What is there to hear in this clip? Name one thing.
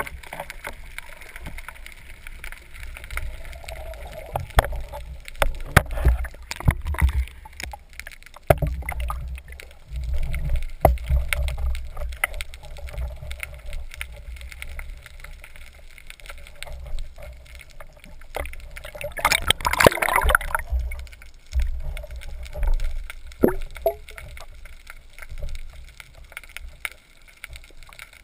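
Water rushes and rumbles low around a diver swimming underwater.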